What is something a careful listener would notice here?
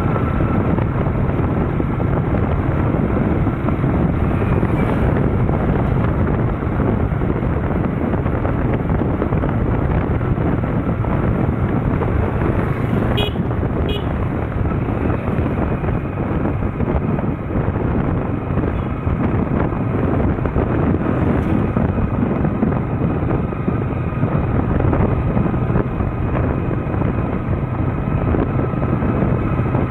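A scooter engine hums steadily.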